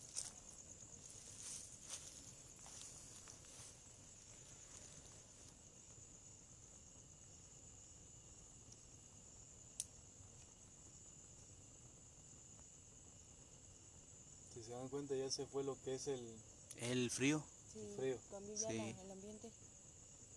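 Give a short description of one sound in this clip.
Flames flicker and crackle softly.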